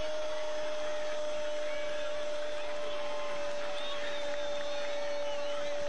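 A large crowd of spectators murmurs and cheers outdoors.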